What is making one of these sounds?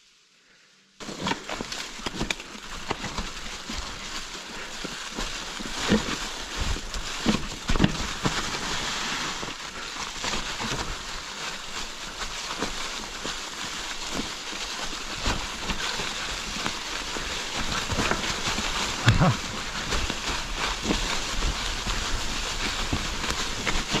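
Mountain bike tyres crunch over dry leaves and rattle on a rough forest trail.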